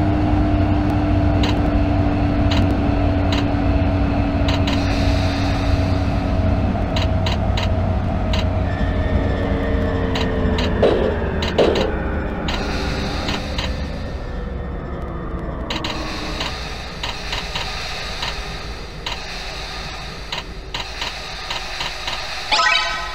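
Train wheels rumble and click over rail joints, slowing to a stop.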